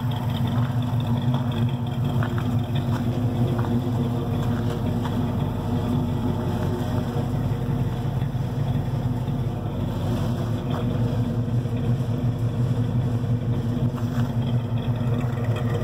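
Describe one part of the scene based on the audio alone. Loose scrap metal rattles and clanks in a truck bed.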